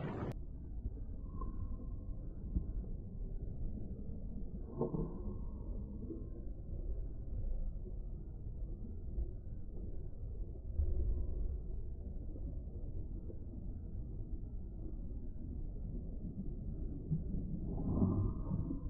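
Small waves lap and splash.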